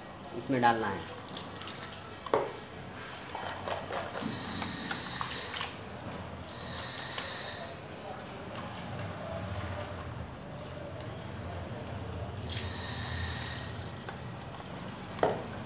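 Water pours from a jug into a bucket of liquid.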